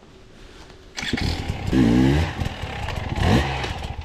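Another dirt bike engine revs as it approaches over a log.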